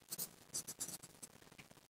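Fingers rub and tap lightly on paper.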